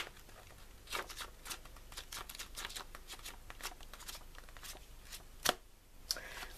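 Paper pages rustle and flip close by.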